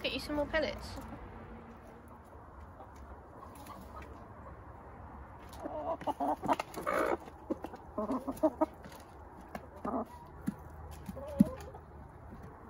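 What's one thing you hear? Hens cluck softly nearby.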